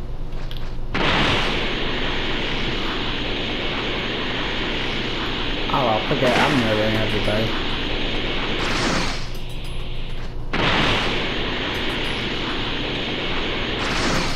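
An energy blast roars loudly in bursts.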